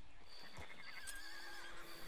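A horse's hooves clop on a dirt track.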